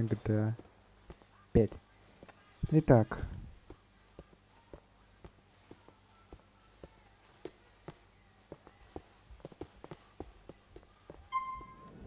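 Footsteps tread on a hard wooden floor.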